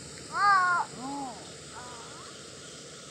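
A gibbon gives loud rising and falling hoots nearby.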